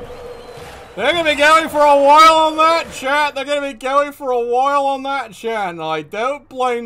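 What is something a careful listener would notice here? A man sings loudly into a microphone.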